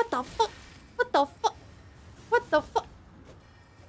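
A young woman speaks briefly and animatedly into a close microphone.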